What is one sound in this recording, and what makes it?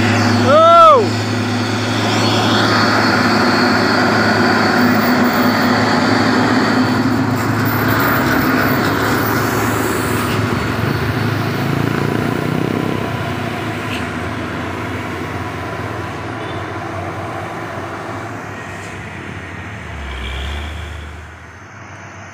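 A heavy truck engine rumbles loudly as the truck drives slowly past.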